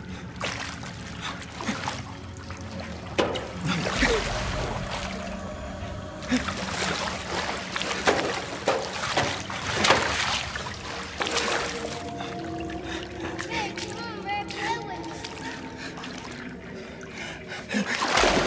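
A man sobs and cries out in distress, close by.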